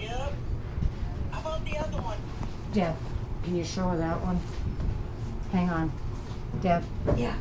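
Hands rustle through a pile of cloth caps.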